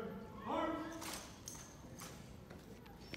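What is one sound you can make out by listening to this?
Rifles clack as a color guard handles them.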